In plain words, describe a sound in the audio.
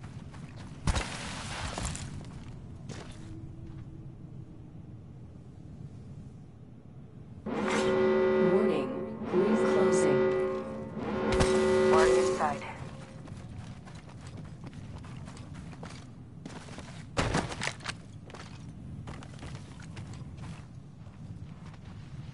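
Footsteps crunch quickly over dirt and gravel.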